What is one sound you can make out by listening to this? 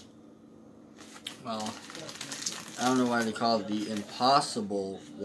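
A paper wrapper crinkles and rustles in hands.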